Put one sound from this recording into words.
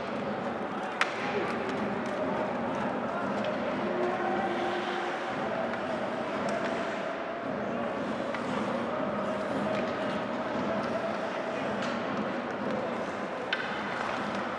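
A hockey stick sharply smacks a puck.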